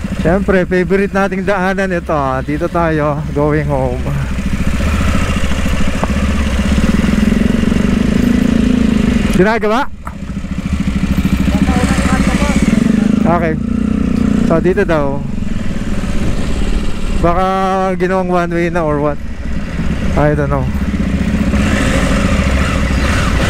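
A motorcycle engine hums steadily up close, rising and falling as it rides.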